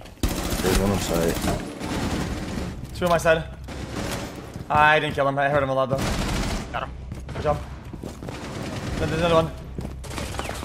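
A young man speaks close to a microphone, with animation.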